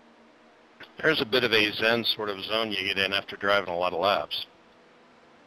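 A man commentates with animation into a close microphone.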